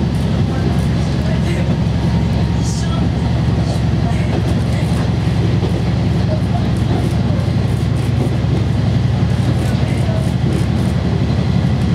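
A diesel railcar's engine drones under way, heard from inside the carriage.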